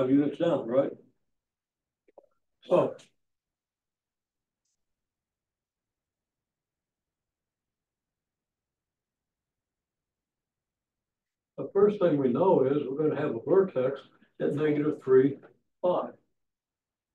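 An elderly man speaks calmly in a lecturing tone, close by.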